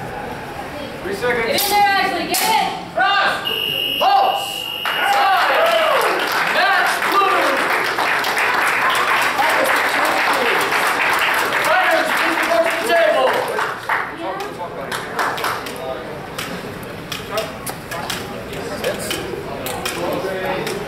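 Men shout loudly in a large echoing hall.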